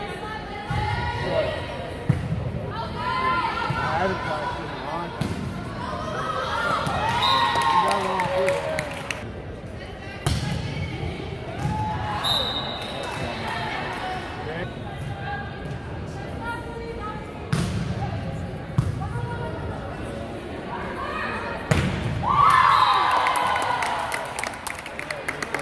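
Young women shout and cheer on the court.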